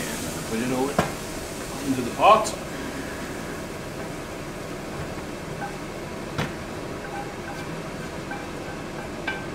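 A metal pan clanks against a pot.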